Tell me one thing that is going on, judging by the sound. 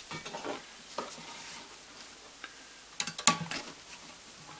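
Light clicks and taps sound as hands handle a sewing machine's parts.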